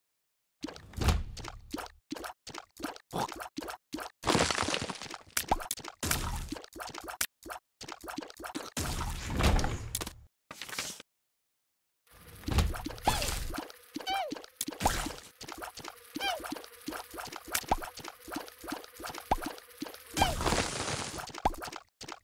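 Wet splats burst as game creatures are hit.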